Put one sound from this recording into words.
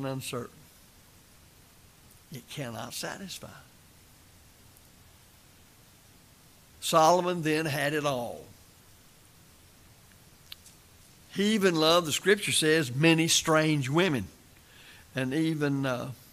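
An elderly man speaks slowly and deliberately into a microphone, with pauses between phrases.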